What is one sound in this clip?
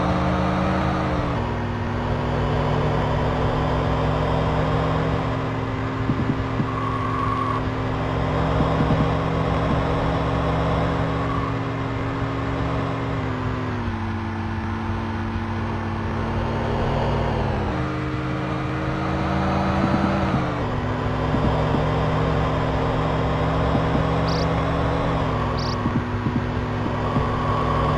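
A car engine drones steadily, its pitch dropping sharply now and then as gears change.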